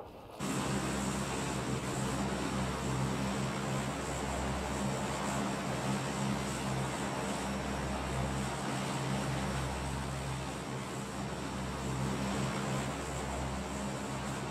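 A large propeller plane's engines drone loudly and steadily.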